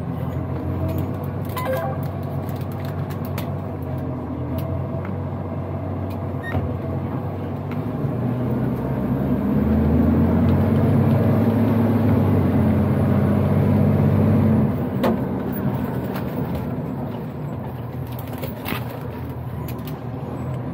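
A truck's cab rattles and knocks over a rough road.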